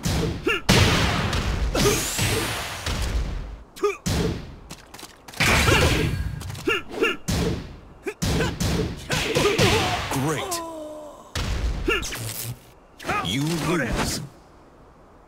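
A fighter grunts and shouts with each strike.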